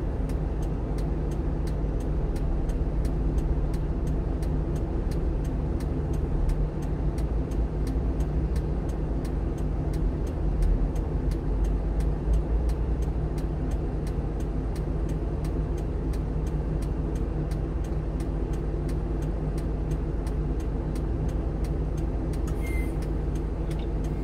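Cars and trucks drive through an intersection nearby.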